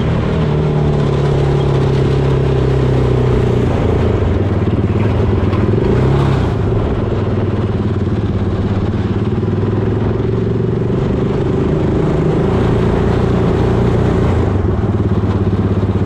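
Tyres crunch and rumble over dirt and gravel.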